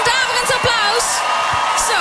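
A young woman sings into a microphone.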